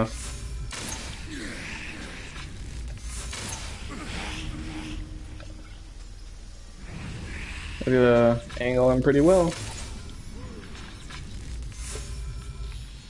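A bow string twangs as arrows are shot, several times.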